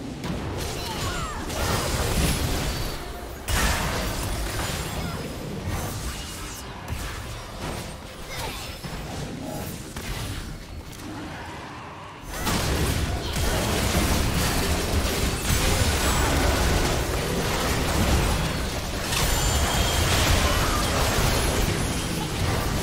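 Magic blasts and hits crackle and boom in a busy video game battle.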